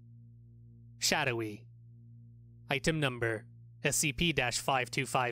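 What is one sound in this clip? A cartoonish young male voice talks with animation in short bursts.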